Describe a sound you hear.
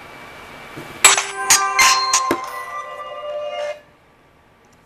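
A phone plays a bright startup jingle.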